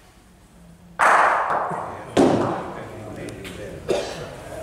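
A heavy ball thuds onto the floor and rolls.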